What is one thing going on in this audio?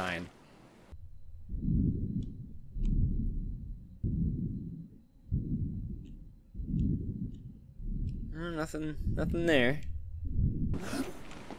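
Water surges in slow, regular, muffled pulses underwater.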